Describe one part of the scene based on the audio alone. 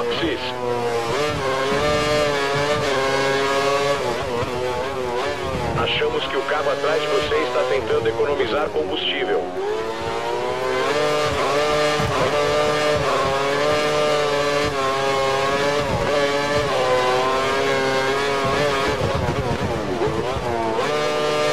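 A racing car engine screams at high revs, rising and dropping in pitch as gears change.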